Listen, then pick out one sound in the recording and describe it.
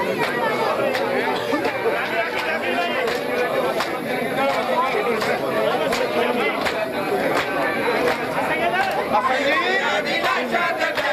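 A large crowd of men chants loudly together in an echoing hall.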